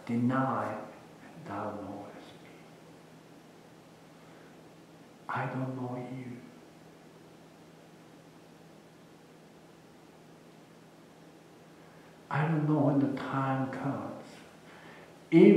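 A middle-aged man speaks calmly in a room with a slight echo, with long pauses between phrases.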